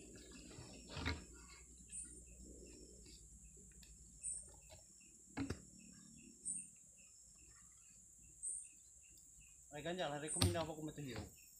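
A wooden block knocks against wood.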